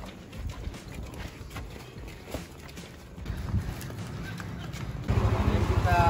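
Footsteps shuffle along a path.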